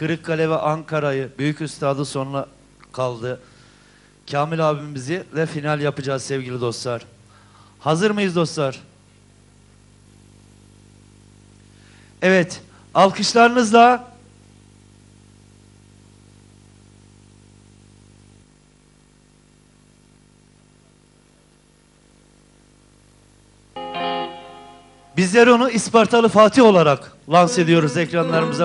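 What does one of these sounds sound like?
A middle-aged man sings loudly into a microphone through loudspeakers.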